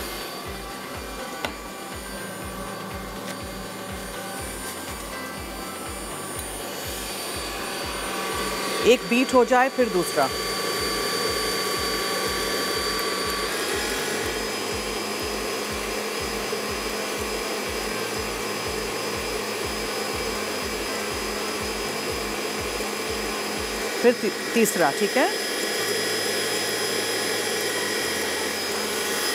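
A stand mixer whirs steadily.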